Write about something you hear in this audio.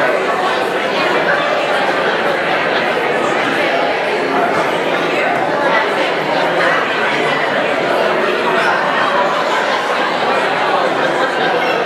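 A crowd of men and women chatter all at once in a large echoing hall.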